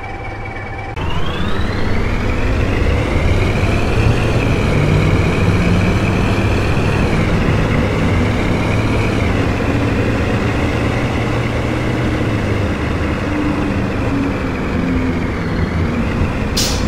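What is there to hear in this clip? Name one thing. A bus engine revs up and roars as the bus pulls away and speeds up.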